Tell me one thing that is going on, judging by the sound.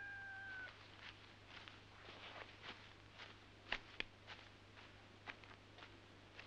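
Horse hooves thud and shuffle on straw.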